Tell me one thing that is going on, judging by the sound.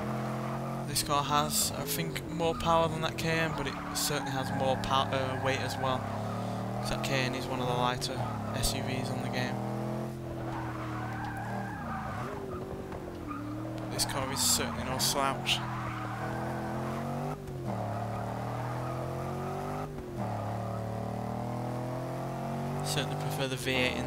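Tyres squeal on tarmac in the turns.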